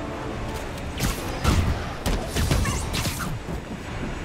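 Blows and impacts thud sharply during a fight.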